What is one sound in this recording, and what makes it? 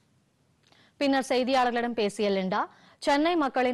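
A young woman speaks calmly into a microphone close by.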